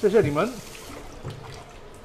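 Water runs from a tap.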